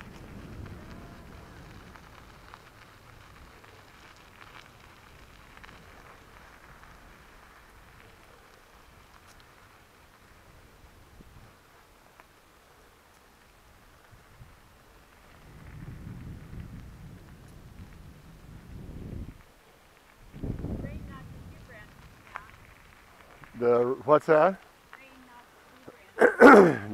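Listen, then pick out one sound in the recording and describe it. Tyres crunch and rumble slowly over a gravel road.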